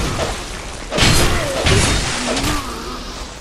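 A fire spell whooshes and bursts.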